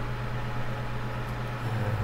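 A soldering iron hisses faintly as it melts solder.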